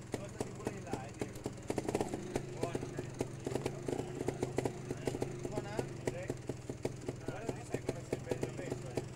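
A motorcycle engine idles steadily close by.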